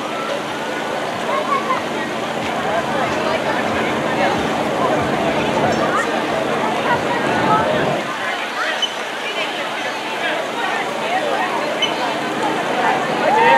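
A crowd of people chatters and calls out in the distance outdoors.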